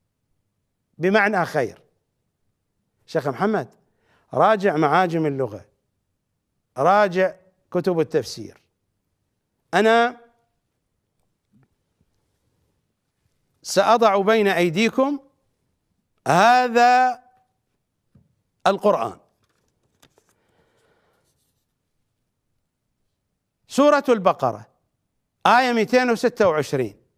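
A middle-aged man speaks with emphasis into a close microphone, pausing often.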